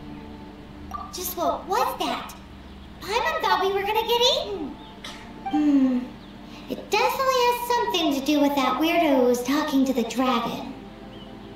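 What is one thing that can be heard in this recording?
A high-pitched girl's voice speaks with animation.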